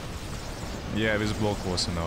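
A young man speaks close to a microphone.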